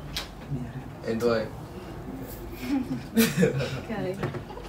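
A group of young people laugh together.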